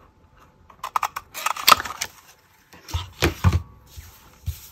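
A paper punch clunks as it is pressed through card.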